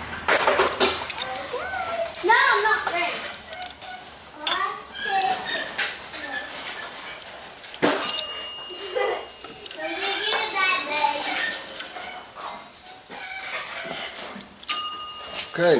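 A ratchet wrench clicks on a metal bolt.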